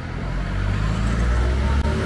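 A motor scooter putters past.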